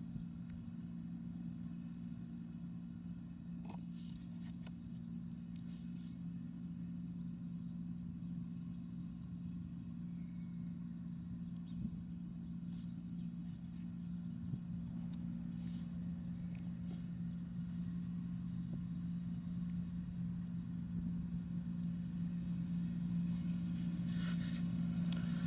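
A combine harvester's engine drones steadily nearby and slowly grows louder as it approaches.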